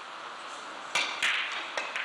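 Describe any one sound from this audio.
A cue strikes a billiard ball with a sharp tap.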